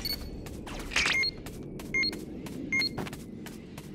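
A handheld radar device beeps in short electronic chirps.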